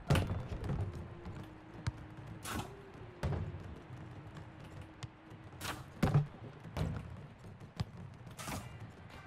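A football is kicked with sharp thuds, again and again.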